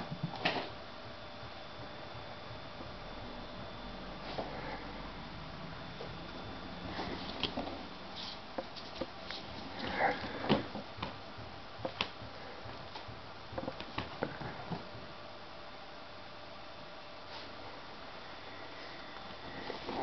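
A kitten's paws patter and skid on a tiled floor as it chases a toy.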